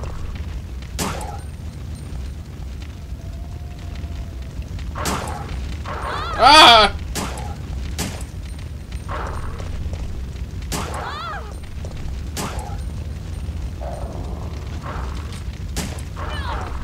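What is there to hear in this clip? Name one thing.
A handgun fires several sharp shots.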